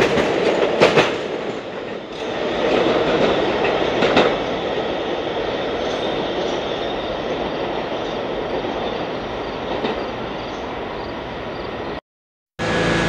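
A distant train rumbles steadily along the tracks.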